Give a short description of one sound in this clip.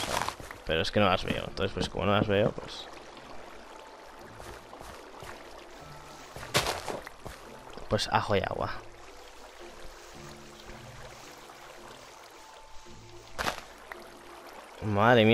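Water swishes and bubbles softly.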